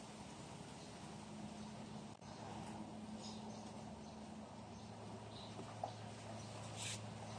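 Fingers rustle through plant leaves and press into potting soil.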